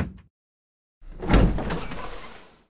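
A heavy wooden door creaks open slowly.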